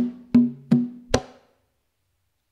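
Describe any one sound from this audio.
A hand drum is struck a few times with deep, ringing beats.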